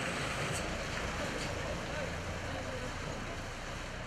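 A truck engine rumbles as the truck drives slowly up a street.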